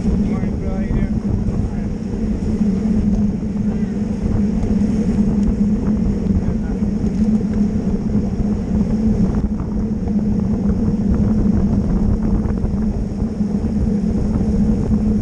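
Bicycle tyres hum on smooth tarmac.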